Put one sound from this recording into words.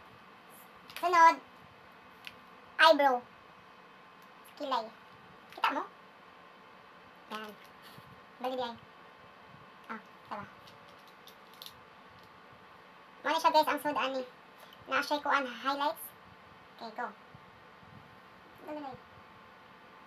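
A woman talks with animation close by, in short bursts.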